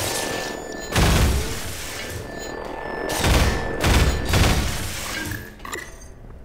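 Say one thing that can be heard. Gunshots crack in loud bursts.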